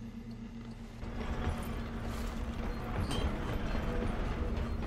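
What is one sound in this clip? A low mechanical hum and rumble fill a large echoing space.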